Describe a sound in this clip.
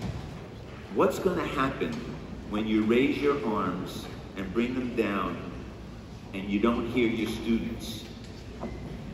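A young woman speaks calmly through a loudspeaker system in a large echoing hall.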